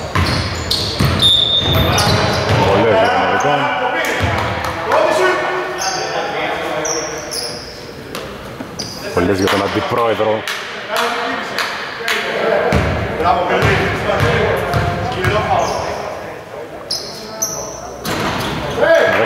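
Sneakers squeak on a hardwood court in a large echoing hall.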